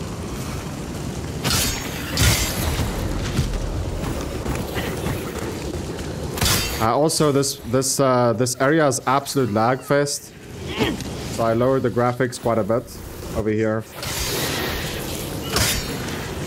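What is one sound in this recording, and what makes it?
Blades swing and strike in a close fight.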